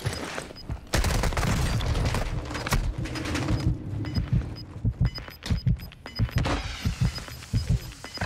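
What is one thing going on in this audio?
Pistol shots crack in quick succession.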